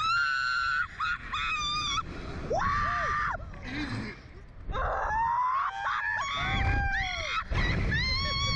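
A young man shouts and yells in fright.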